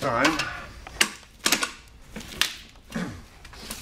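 A wooden chair creaks and knocks as it is moved.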